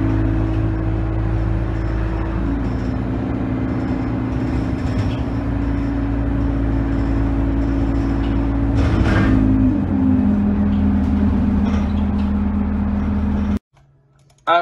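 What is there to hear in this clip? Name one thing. A bus body rattles and creaks over the road.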